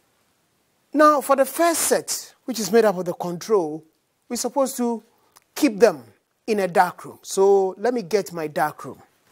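A man speaks clearly and calmly, close to a microphone.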